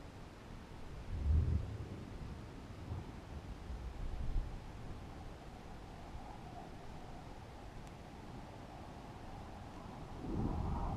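Wind rumbles and buffets in gusts.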